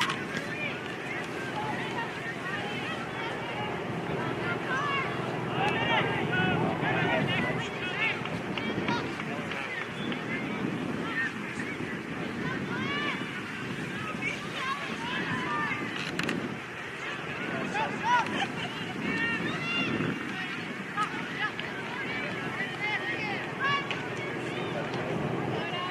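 Young women shout and call to each other across an open field, heard from a distance.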